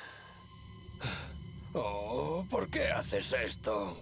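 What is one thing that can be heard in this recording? A young woman speaks in distress, her voice rising.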